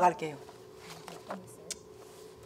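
A middle-aged woman sings in a strained, expressive voice close to a microphone.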